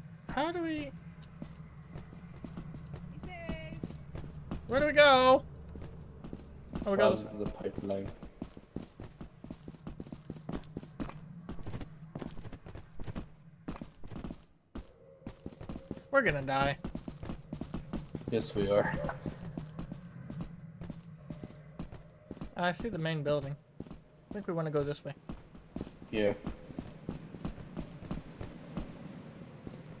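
Footsteps crunch on sand and gravel.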